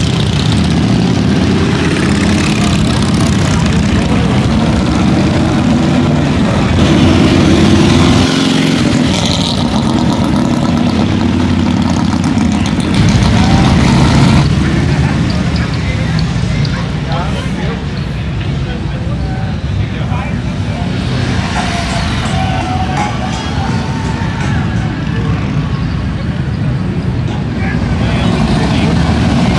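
Motorcycle engines rumble loudly as motorcycles ride past one after another.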